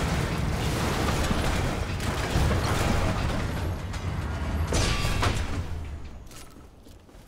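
A heavy engine rumbles loudly, then fades.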